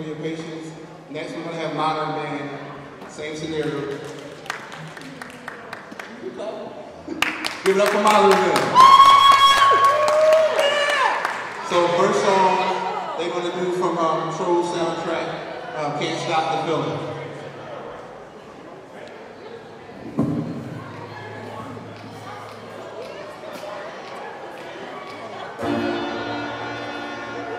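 Young women sing together into microphones in a large echoing hall.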